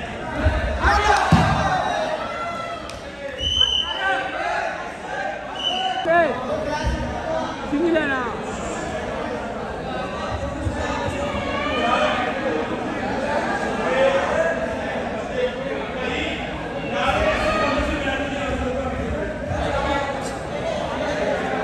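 Men nearby shout and cheer in an echoing hall.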